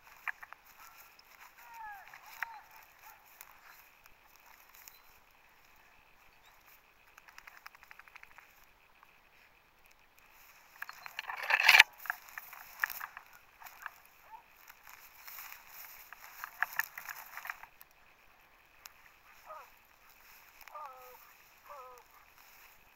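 Dogs run and rustle through long grass nearby.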